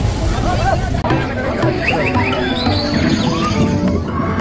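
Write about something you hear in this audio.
A crowd of people chatter outdoors.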